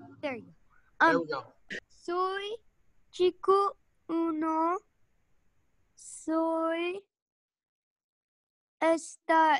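Young students answer in turns over an online call.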